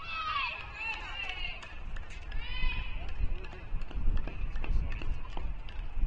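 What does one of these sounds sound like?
A tennis ball bounces on a hard court a few times.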